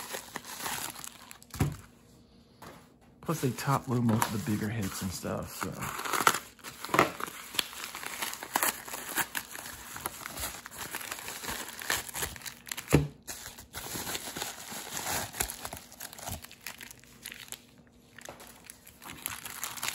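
Plastic card cases click and clatter.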